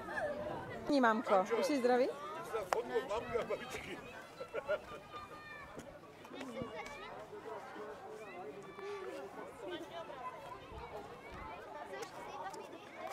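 Children chatter nearby in a group outdoors.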